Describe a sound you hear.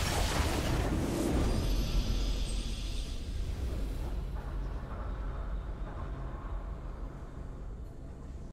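A triumphant video game fanfare plays and slowly fades.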